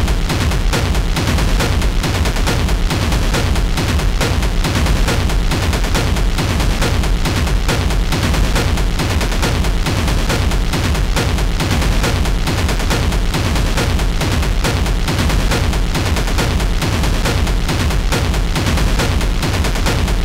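Electronic techno music plays loudly with a steady thumping beat.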